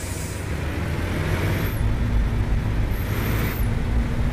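A truck's diesel engine revs louder as the truck pulls away.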